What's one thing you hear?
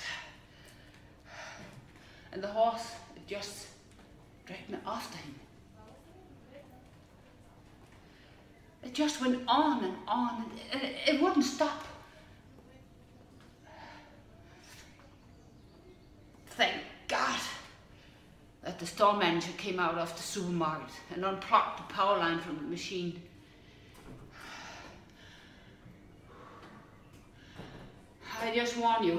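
A middle-aged woman speaks a dramatic monologue close by, with long pauses.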